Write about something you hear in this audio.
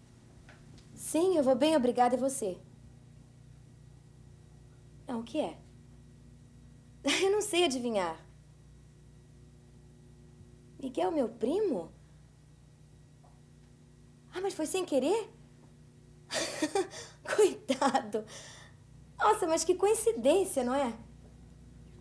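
A woman speaks into a telephone in short bursts with pauses.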